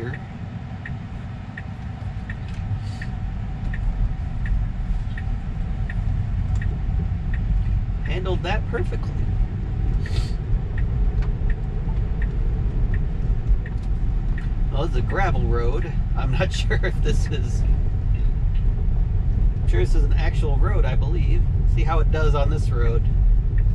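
Tyres rumble steadily on the road as a car drives along, growing slightly louder.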